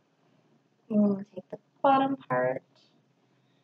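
A young woman speaks a few short words close by.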